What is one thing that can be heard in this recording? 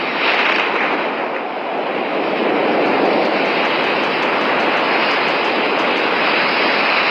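Wind rushes steadily past a gliding parachute.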